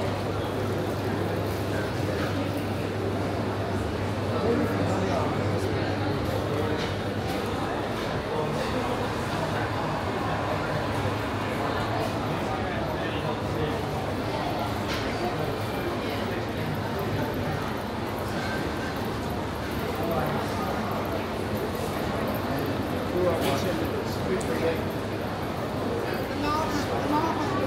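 A crowd of shoppers murmurs and chatters in a large echoing hall.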